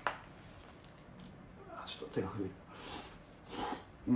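A young man slurps noodles loudly.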